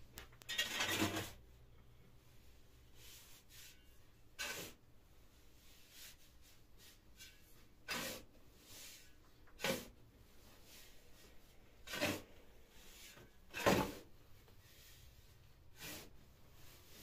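A shovel scrapes and scoops through dry sand and cement.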